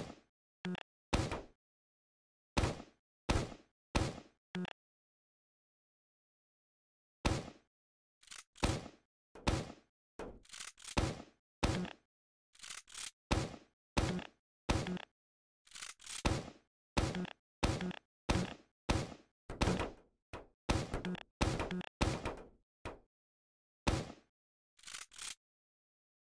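A game gun fires sharp energy shots in quick bursts, each ringing briefly.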